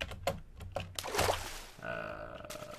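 Water splashes briefly.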